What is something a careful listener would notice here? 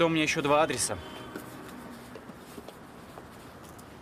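Footsteps walk away on pavement outdoors.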